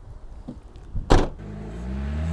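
A car boot slams shut with a thud.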